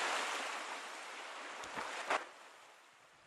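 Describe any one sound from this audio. Waves wash gently onto a shore.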